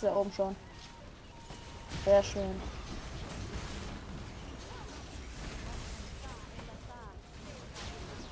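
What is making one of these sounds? Magic spells blast and crackle in a fantasy battle game.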